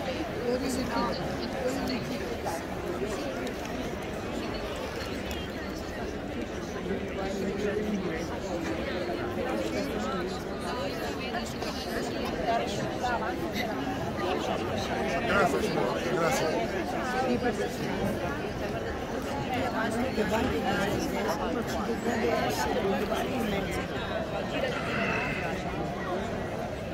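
A large crowd murmurs and chatters in an open-air arena.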